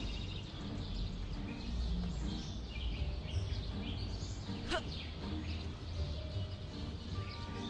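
Footsteps clatter on a tiled roof.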